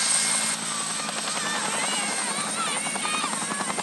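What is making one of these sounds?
A group of young children shout and cheer outdoors.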